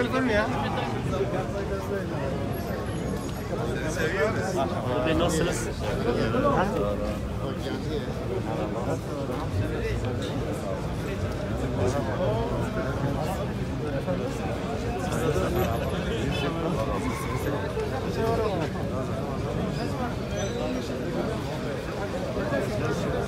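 A crowd of men talk and chatter all around, close by.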